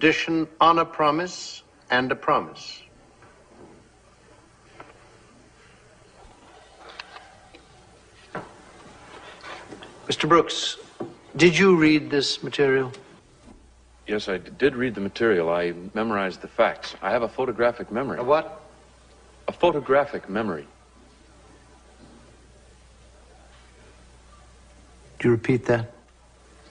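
An elderly man lectures in a calm, measured voice.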